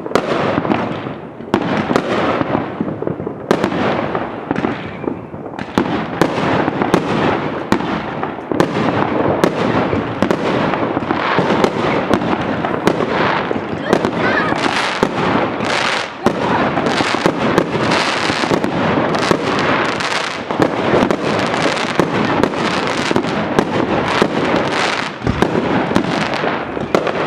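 Fireworks fizz and crackle as sparks burst.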